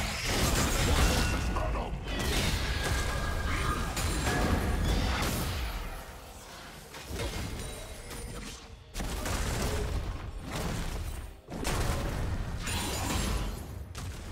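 Fantasy battle effects whoosh, clash and crackle in quick bursts.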